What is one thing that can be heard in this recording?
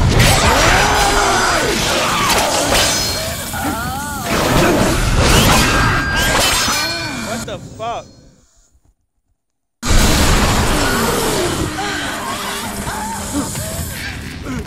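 Creatures shriek and screech in battle.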